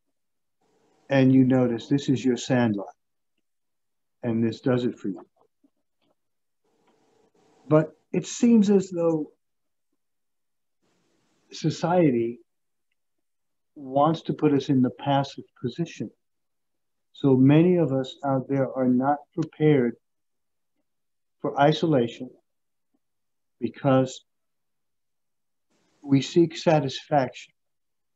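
A middle-aged man speaks calmly in short phrases, close to the microphone as over an online call.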